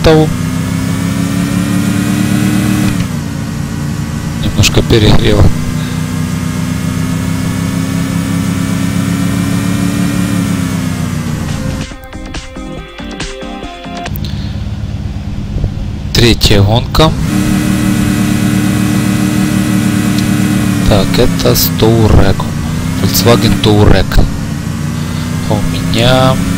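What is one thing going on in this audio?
A car engine roars and revs up steadily.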